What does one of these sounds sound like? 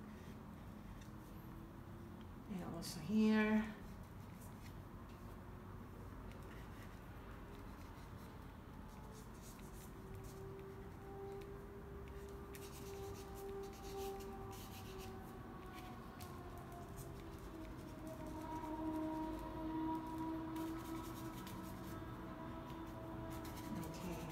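A paintbrush softly scrapes and dabs across a canvas.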